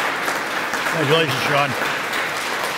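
A man calls out briefly over the applause.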